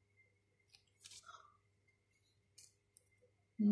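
Playing cards rustle and slide against each other.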